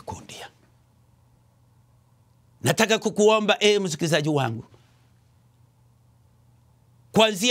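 A middle-aged man speaks slowly and emphatically through a microphone, with long pauses.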